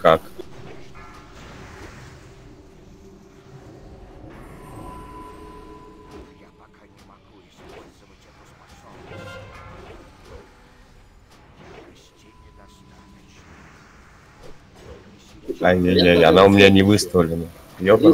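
Game spells crackle and burst during a fantasy battle.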